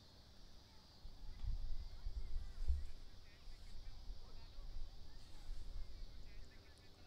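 Wind gusts against a microphone outdoors.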